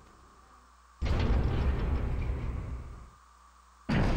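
Heavy metal lift doors slide open with a loud rumbling clatter.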